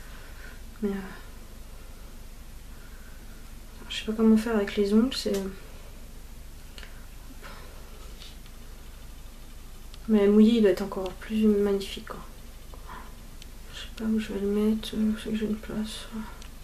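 A young woman talks calmly and close up, in short bursts.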